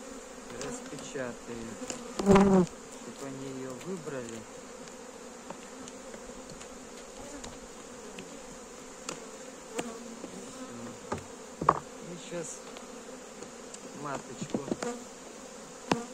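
Bees buzz steadily close by.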